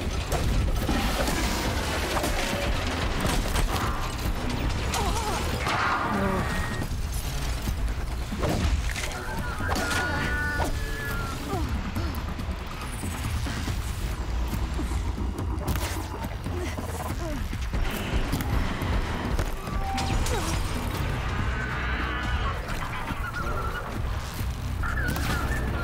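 Game weapons and blasts thud and crackle in quick bursts.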